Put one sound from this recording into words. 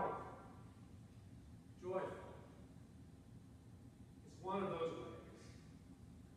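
A man speaks slowly through a microphone in a large echoing hall, pausing between phrases.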